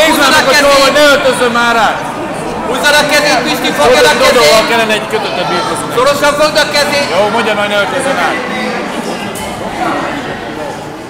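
Men and boys shout encouragement loudly nearby.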